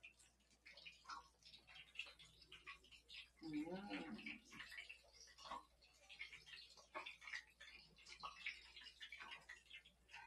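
Hot oil sizzles and crackles in a frying pan.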